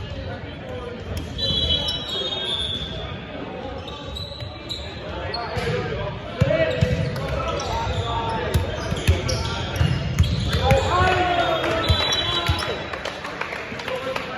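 Teenage boys call out to each other in an echoing gym.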